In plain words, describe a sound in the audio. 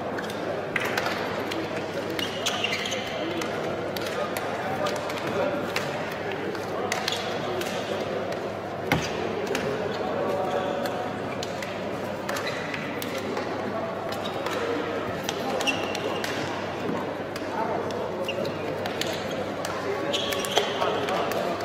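Many men talk and call out at once in a large echoing hall.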